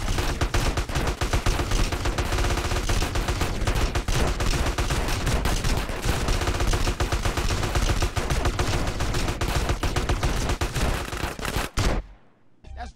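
Rapid gunfire crackles and bangs nonstop.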